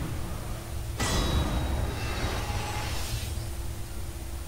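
A magical burst whooshes and shimmers.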